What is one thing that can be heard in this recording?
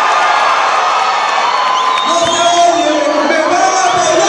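A crowd claps.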